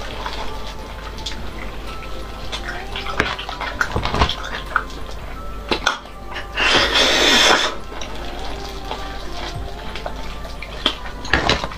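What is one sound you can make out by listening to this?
Soft food tears and squelches between gloved fingers.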